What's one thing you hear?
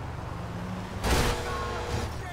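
A car crashes into a truck with a loud bang.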